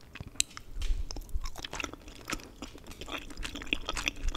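A young woman chews food wetly, close to a microphone.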